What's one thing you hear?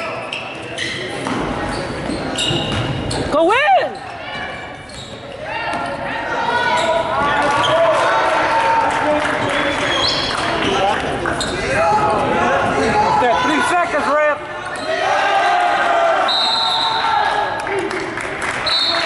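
A crowd of spectators shouts and cheers, echoing in a large hall.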